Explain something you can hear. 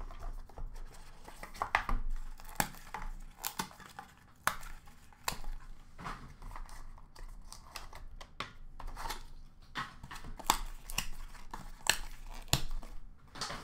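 Cardboard boxes and plastic cases clatter and rustle as they are handled in a plastic bin.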